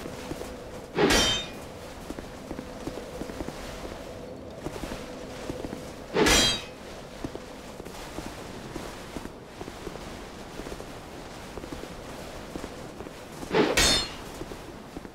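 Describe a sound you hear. Heavy weapon blows land with loud, sudden crashes a few times.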